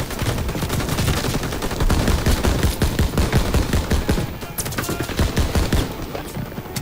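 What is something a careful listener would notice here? A machine gun fires in bursts.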